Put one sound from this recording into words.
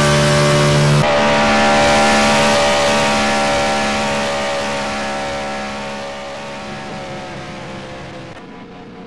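A race car engine roars past and fades into the distance.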